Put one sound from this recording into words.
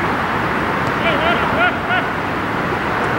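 Men shout to each other in the distance outdoors.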